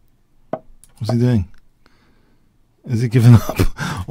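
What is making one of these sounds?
A middle-aged man speaks briefly into a close microphone.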